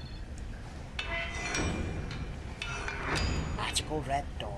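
A metal door bolt scrapes as it slides open.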